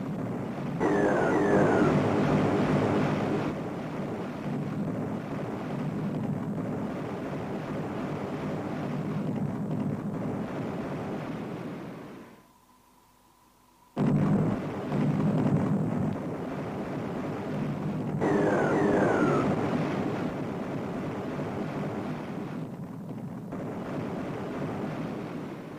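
A ship's engine drones steadily.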